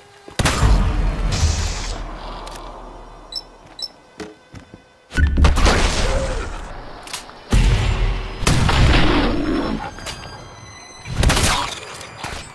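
A shotgun fires with loud booming blasts.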